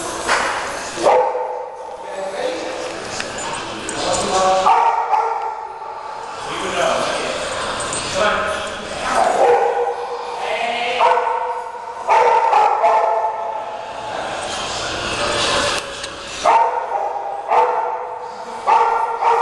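Puppies growl and yip as they play-fight.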